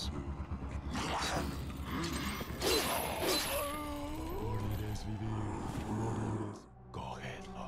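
A man grunts and groans in pain.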